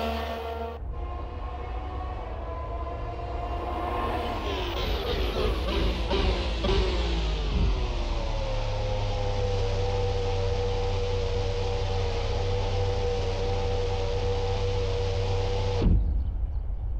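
A racing car engine roars closer and settles into a steady idle.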